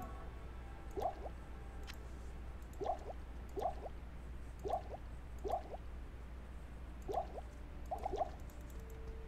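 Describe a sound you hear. Small items click.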